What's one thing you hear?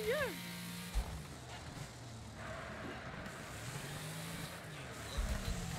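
Tyres skid and scrape across a dirt track.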